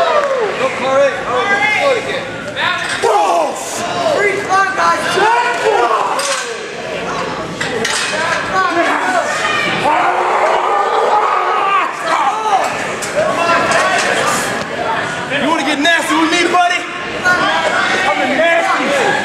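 A crowd of men and women shouts and cheers close by in a large echoing hall.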